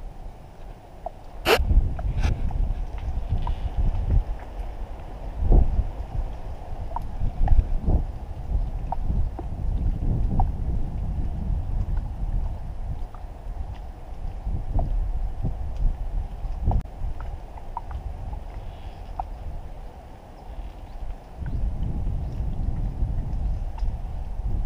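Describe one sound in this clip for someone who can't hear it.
Wind rumbles and buffets loudly outdoors on open water.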